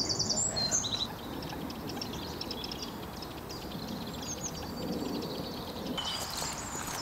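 Raindrops patter lightly on water.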